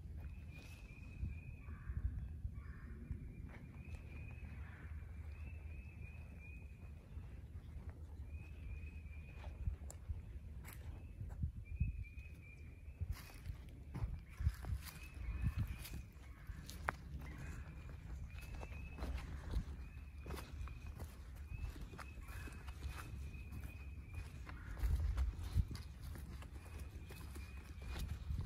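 Footsteps rustle through dry leaves.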